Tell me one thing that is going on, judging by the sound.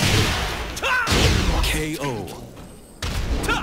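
A loud explosive blast booms as a fighter is knocked out.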